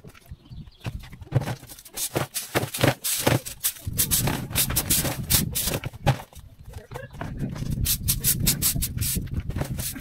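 A plastic bin knocks and scrapes on the ground.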